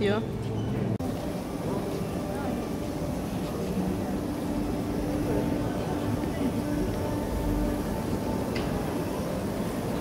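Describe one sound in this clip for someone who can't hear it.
A crowd of people chatters nearby indoors.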